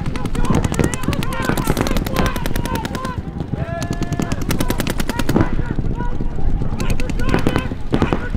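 A paintball gun fires rapid popping shots.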